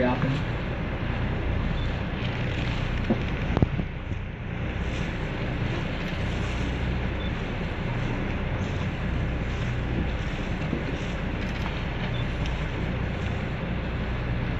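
Choppy waves slosh and splash steadily.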